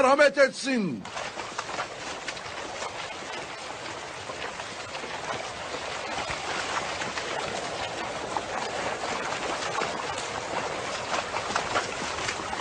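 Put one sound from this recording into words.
Footsteps and hooves rustle through dry grass.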